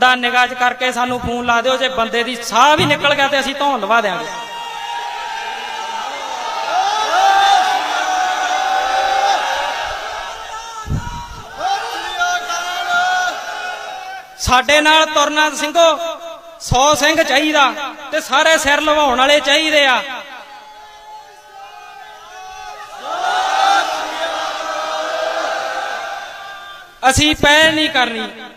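A man speaks forcefully into a microphone through a loudspeaker, outdoors.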